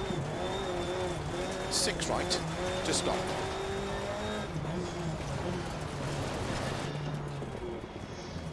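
A rally car engine revs and roars.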